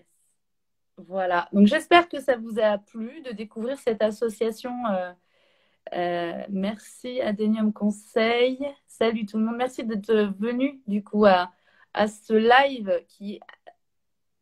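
A woman speaks calmly and warmly, close to the microphone.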